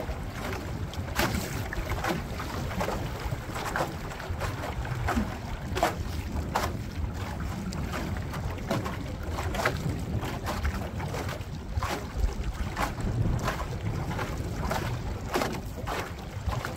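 Small waves slap against the hull of a boat.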